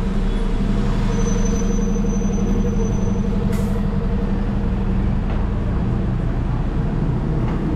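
A diesel double-decker bus idles.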